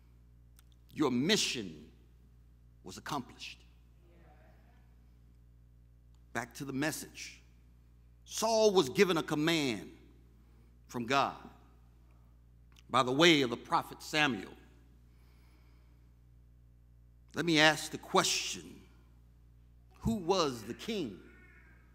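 A man preaches with emphasis into a microphone, in short bursts with pauses.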